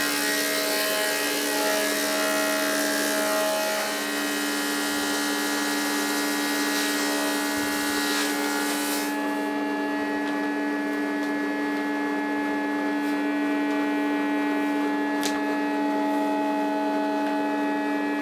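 A machine hums loudly and steadily.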